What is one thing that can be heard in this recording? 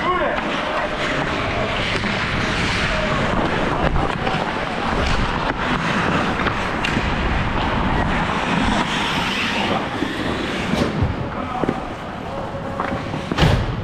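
A hockey stick clacks against the ice and a puck.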